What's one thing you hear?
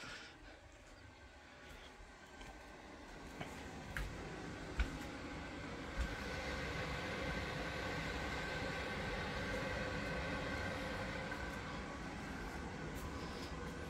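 A wood fire crackles softly in a stove.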